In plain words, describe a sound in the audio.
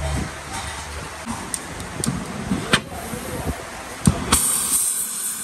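Metal washers clink and rattle against each other.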